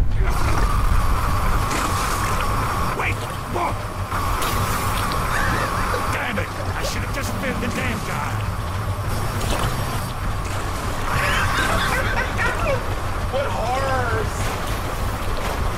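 A middle-aged man laughs loudly and shrieks close to a microphone.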